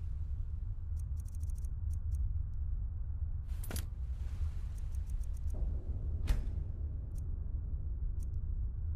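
Soft menu clicks tick in quick runs.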